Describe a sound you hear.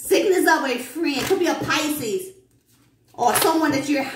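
Cards rustle and flutter as a deck is shuffled by hand.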